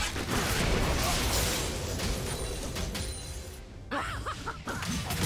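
Magic blasts crackle and whoosh in a chaotic fight.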